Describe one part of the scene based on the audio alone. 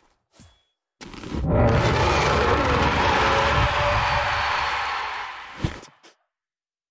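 A short, lively game sound effect plays, then cuts off.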